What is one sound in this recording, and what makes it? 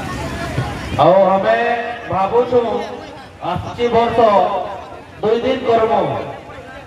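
A man speaks loudly through a microphone and loudspeaker.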